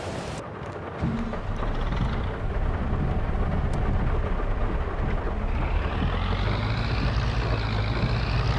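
A tractor engine starts up and idles with a low, steady rumble.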